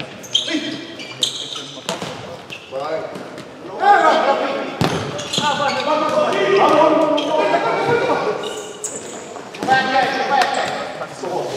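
A ball is kicked hard in a large echoing hall.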